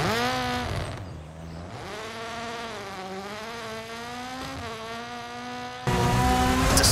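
A rally car engine roars past in the distance and fades away.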